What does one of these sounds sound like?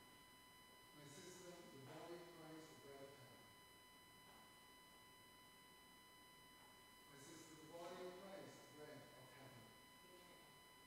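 A man speaks calmly at a distance in an echoing room.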